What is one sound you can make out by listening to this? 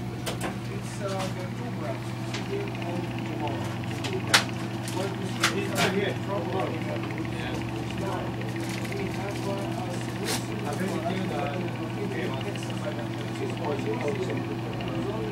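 A small stirrer motor hums steadily.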